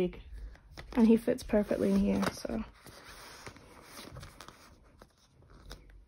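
Plastic sleeves rustle and crinkle as they are handled.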